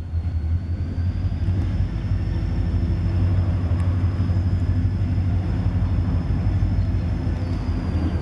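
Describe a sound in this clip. A diesel locomotive engine rumbles steadily as it approaches.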